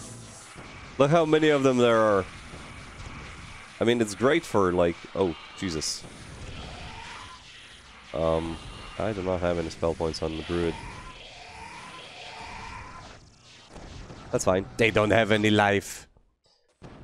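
A monster roars loudly several times.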